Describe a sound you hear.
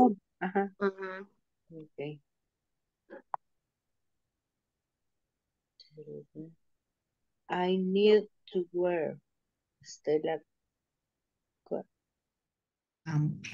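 A young woman speaks over an online call, in short phrases with pauses.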